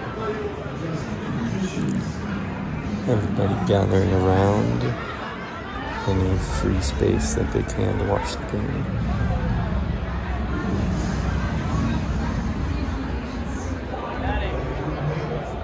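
A large crowd chatters and murmurs in a big echoing hall.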